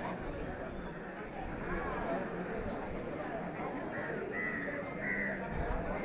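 A crowd of men and women chant together outdoors.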